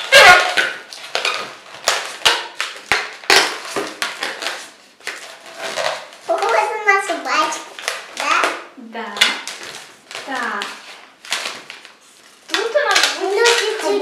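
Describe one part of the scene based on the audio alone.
Rubber balloons squeak and rub as they are twisted by hand.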